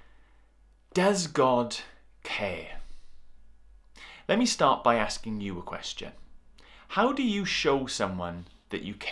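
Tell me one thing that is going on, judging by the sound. A man speaks calmly and close to the microphone, with pauses.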